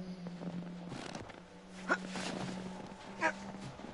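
A man climbs onto a metal bin with dull thumps and scrapes.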